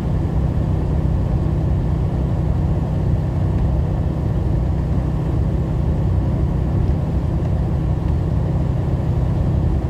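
A truck's engine drones steadily from inside the cab.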